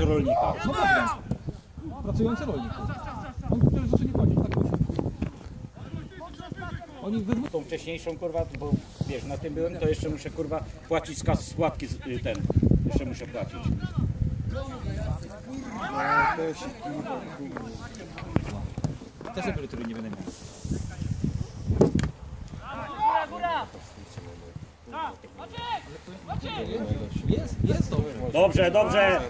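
Footballers shout and call to each other across an open field outdoors.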